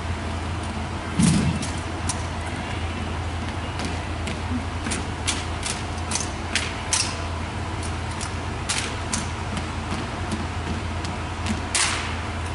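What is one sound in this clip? Boots stomp and shuffle on a wooden floor.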